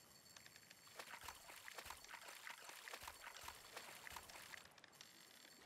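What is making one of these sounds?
A fishing reel clicks rapidly as a line is wound in.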